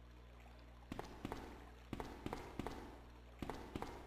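Footsteps echo on a hard stone floor.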